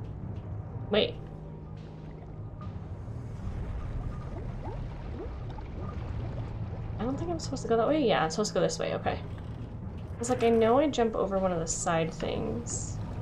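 A low, steady rumble of bubbling lava goes on throughout.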